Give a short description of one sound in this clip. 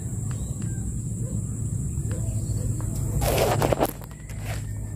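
A fish splashes and flaps on a fishing line.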